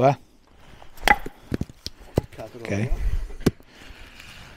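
A knife blade knocks sharply on wood.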